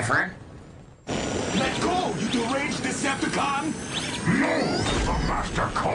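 A robot's jet rockets roar.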